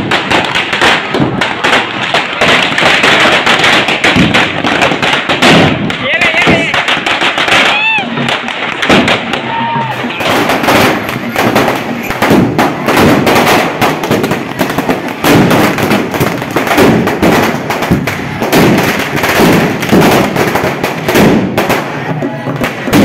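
Firecrackers crackle and bang rapidly nearby.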